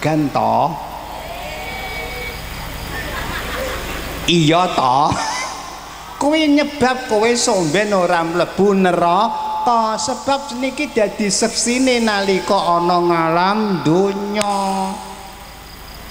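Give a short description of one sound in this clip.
An elderly man sings loudly into a microphone, heard through loudspeakers.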